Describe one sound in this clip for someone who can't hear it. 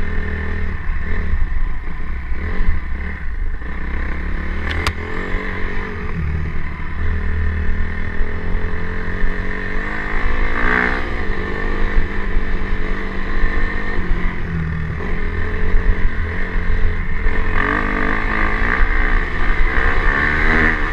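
A motorcycle engine drones and revs up and down.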